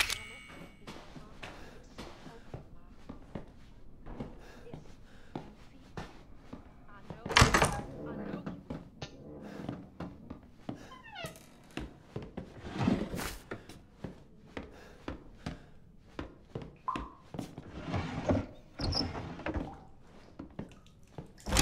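Footsteps thud on creaky wooden floorboards.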